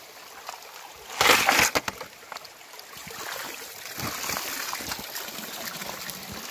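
Water pours from a pan and splashes onto rocks.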